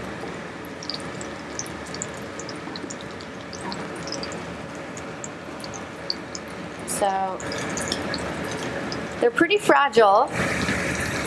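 A metal spatula scrapes against a frying pan.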